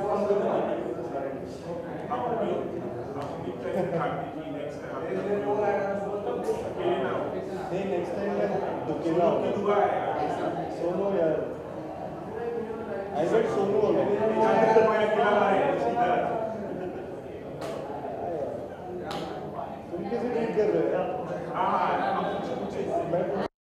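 A young man speaks cheerfully and close to a microphone.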